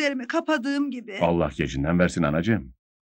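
An elderly man speaks nearby in a low voice.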